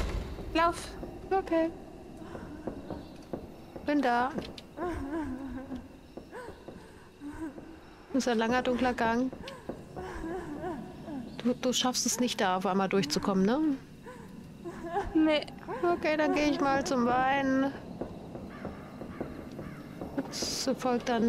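Footsteps thud slowly on creaking wooden boards.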